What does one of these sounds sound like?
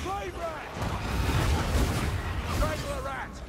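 A fiery explosion bursts with a deep boom.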